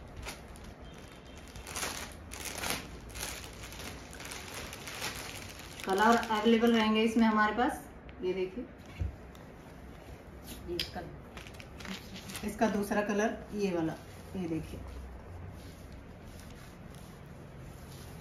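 Fabric and plastic wrapping rustle and crinkle as they are handled.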